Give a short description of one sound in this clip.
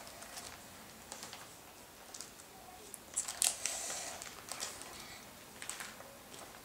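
Stiff plastic pages crackle and rustle as they are turned.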